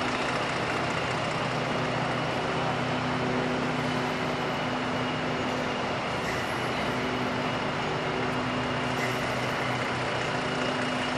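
A bus engine hums steadily as the bus rolls slowly forward in a large echoing hall.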